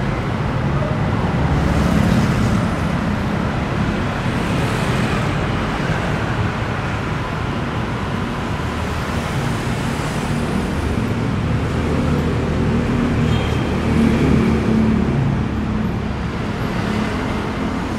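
Motorbikes pass by on a busy street.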